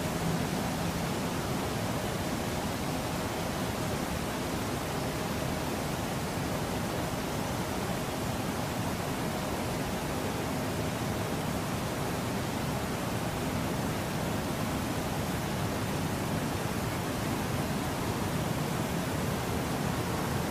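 A pressure washer sprays water in a steady hiss against a bus.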